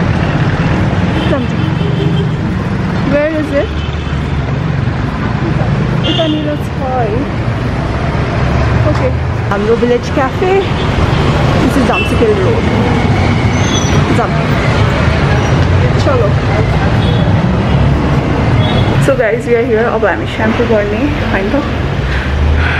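A young woman speaks close by, calmly.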